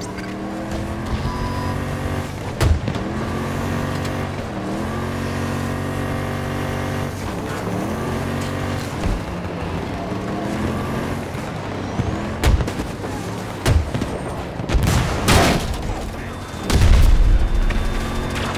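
A vehicle engine drones steadily and shifts pitch as it drives.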